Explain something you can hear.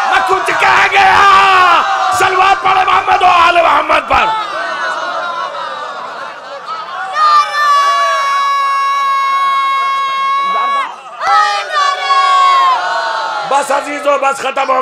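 A crowd of men chants along in unison.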